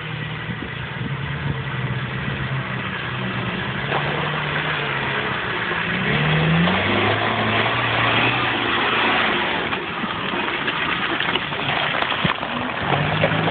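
An off-road 4x4 engine revs as it drives through deep mud.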